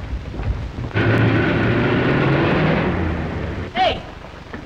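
A car engine roars as the car drives off.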